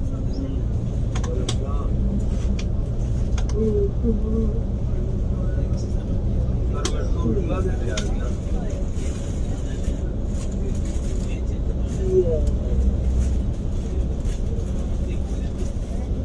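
A bus engine rumbles steadily from inside the cab.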